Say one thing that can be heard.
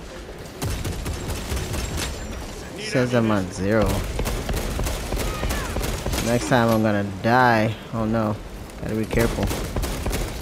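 Rapid gunfire crackles in sharp bursts.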